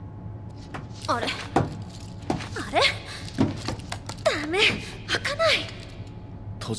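A young woman strains and speaks in frustration, close by.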